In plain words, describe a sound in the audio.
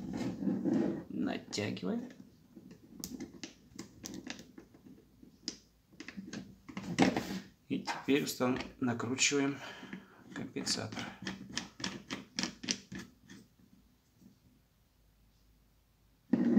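Small plastic parts click and scrape as hands fit them together.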